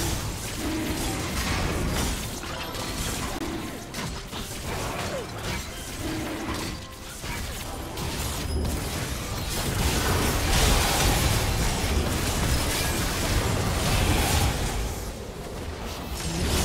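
Game spell effects crackle, whoosh and boom during a fight.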